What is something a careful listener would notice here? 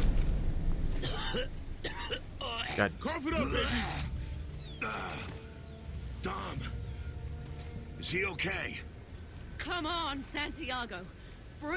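A man speaks in a strained, gruff voice.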